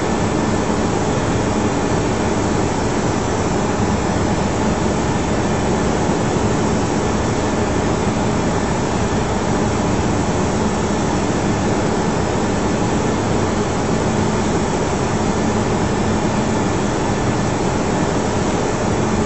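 A steady roar of jet engines and rushing air fills an aircraft cockpit.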